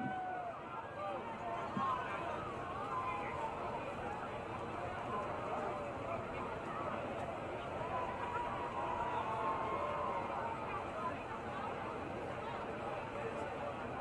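A large crowd of people chatters and calls out outdoors.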